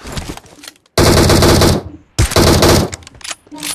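Loud rifle shots crack in quick bursts.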